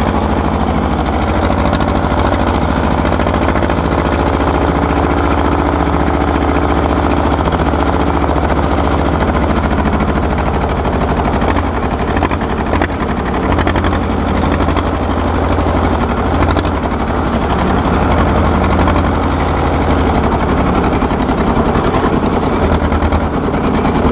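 An old tractor engine chugs loudly and steadily up close.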